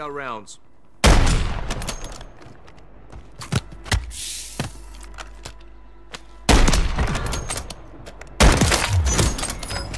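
Loud rifle shots boom and echo.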